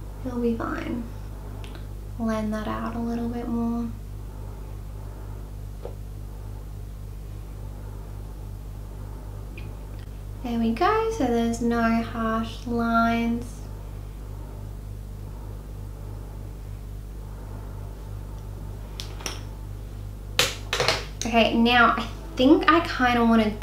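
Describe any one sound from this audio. A young woman talks calmly and close by, in short bursts.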